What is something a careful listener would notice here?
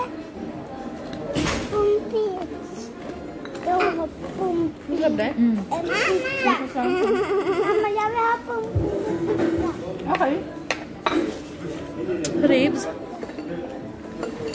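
Young women talk and laugh close by.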